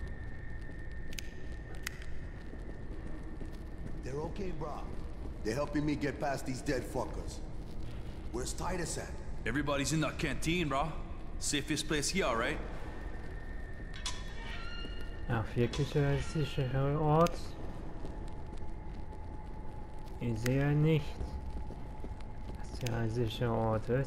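A torch flame crackles and roars.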